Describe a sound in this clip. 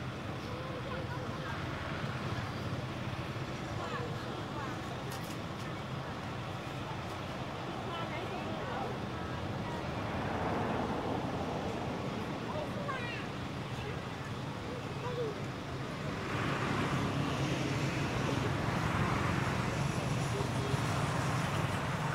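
Leaves rustle as a monkey shifts about on a tree branch.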